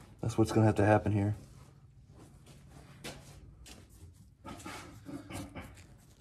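A cloth rubs against metal.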